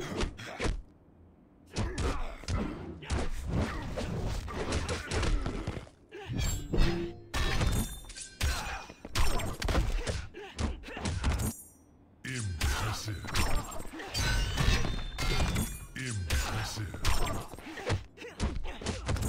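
Punches and kicks land with heavy thuds and whooshes in a fighting game.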